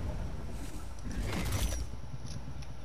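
A creature breathes out a roaring burst of fire.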